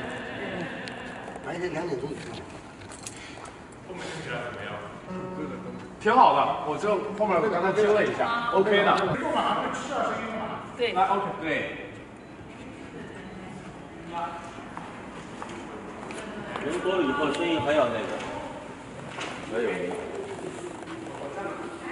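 Several men talk nearby in a large echoing hall.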